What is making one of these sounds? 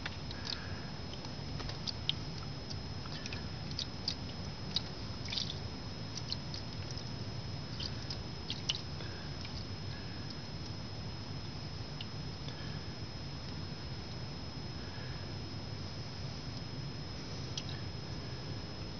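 Water pours from a plastic jug and splashes onto a metal tray.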